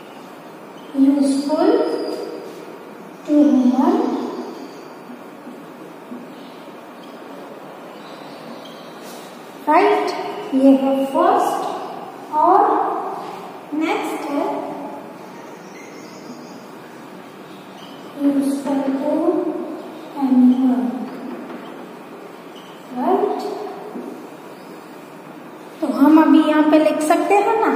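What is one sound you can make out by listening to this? A woman speaks clearly and slowly, as if teaching, close by.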